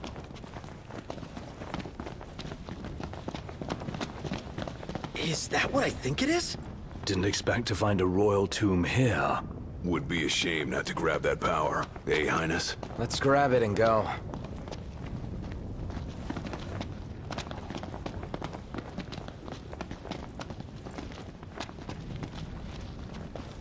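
Footsteps run quickly over rock.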